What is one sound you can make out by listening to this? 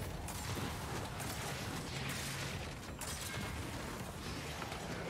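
Gunfire bursts rapidly from a video game.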